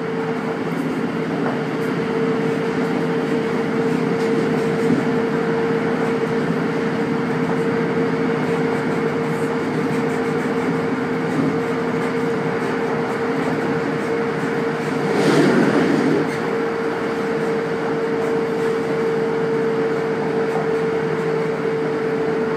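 A train rumbles steadily along the tracks with a constant humming drone.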